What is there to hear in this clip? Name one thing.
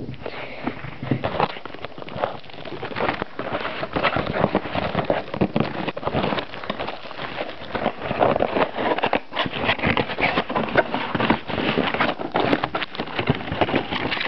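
Cardboard and plastic packaging rustle and crinkle close by.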